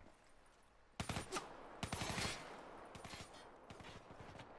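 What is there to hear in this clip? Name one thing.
Gunfire rattles in short bursts.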